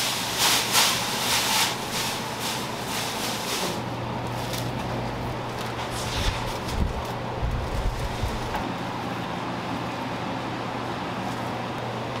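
Gloved hands rustle and toss fresh leafy greens in a metal bowl.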